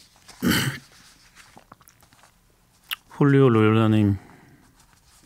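A middle-aged man speaks briefly into a close microphone.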